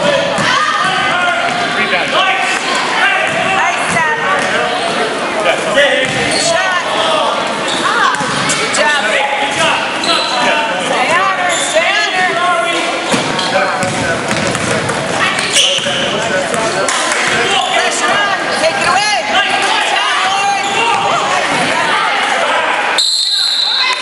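A crowd of spectators cheers and shouts in an echoing gym.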